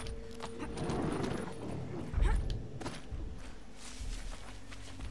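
Footsteps crunch over rock and rustle through grass.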